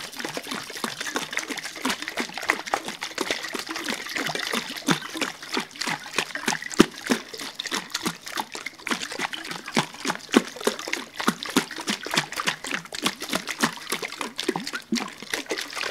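Fingernails tap on a plastic bottle close to a microphone.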